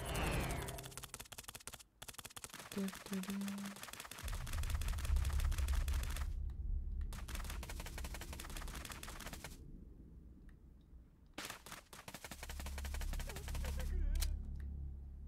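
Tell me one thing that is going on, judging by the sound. Quick light footsteps patter over the ground.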